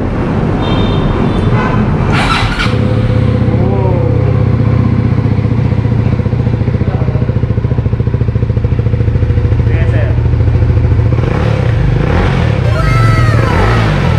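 A motorcycle engine idles with a steady, throbbing rumble close by.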